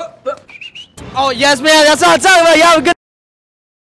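A young man laughs loudly outdoors.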